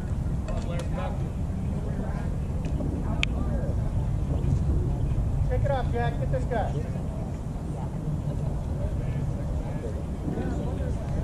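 Wind rumbles steadily across an open outdoor field.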